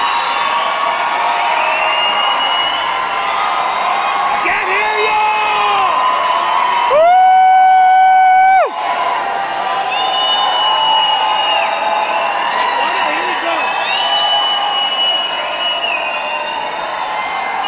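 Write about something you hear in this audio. A large crowd sings together in a big echoing hall.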